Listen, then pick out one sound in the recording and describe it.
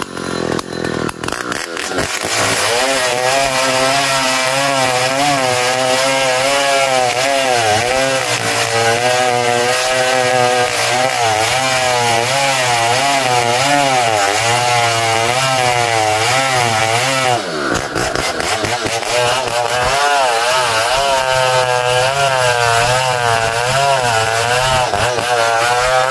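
A chainsaw engine roars loudly, its pitch wavering as it cuts into a tree trunk.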